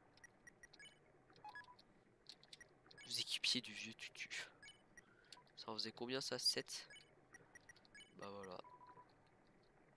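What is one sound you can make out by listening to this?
Short electronic blips sound as a menu cursor moves.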